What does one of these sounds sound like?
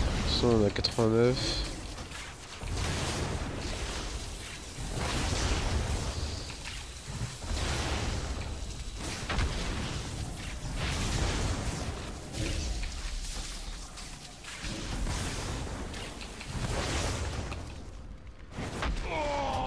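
Magic spells crackle and boom in a game battle.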